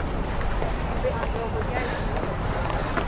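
A young man speaks quietly close by.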